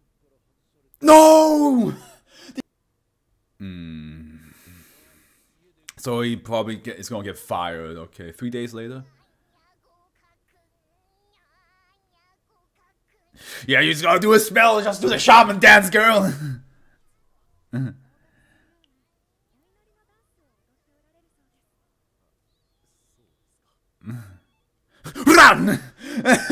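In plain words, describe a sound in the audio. A young man exclaims loudly and with animation, close by.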